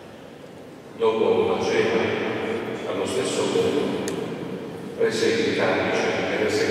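Voices sing together in a large echoing hall.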